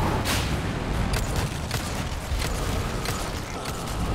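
Pistol shots ring out with a sharp crack.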